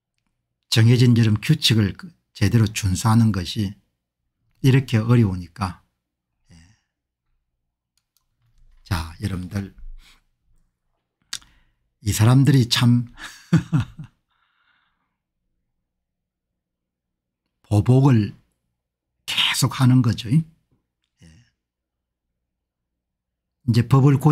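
A middle-aged man speaks calmly into a close microphone, in bursts with pauses.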